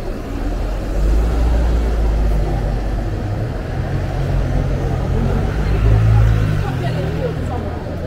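A bus engine rumbles past close by.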